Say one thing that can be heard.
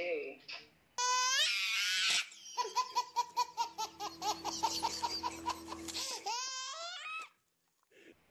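A baby laughs loudly in bursts of giggles.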